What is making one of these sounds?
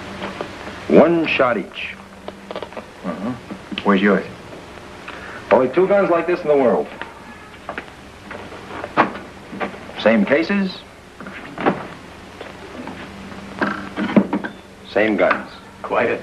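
A man speaks calmly in short phrases, with pauses between them.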